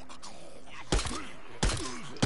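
A pistol fires two loud shots.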